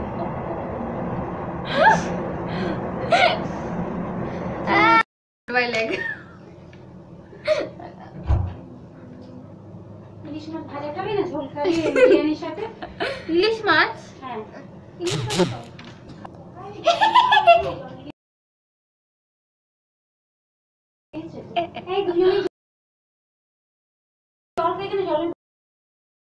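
Two young women talk and laugh close by.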